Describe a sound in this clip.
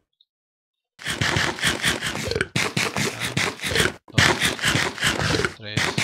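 Crunchy chewing sounds repeat as food is eaten.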